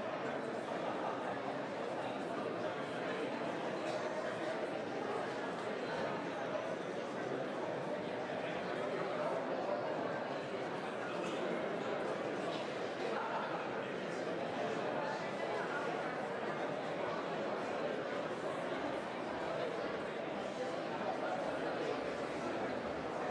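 A crowd of men and women murmurs and chatters in a large room.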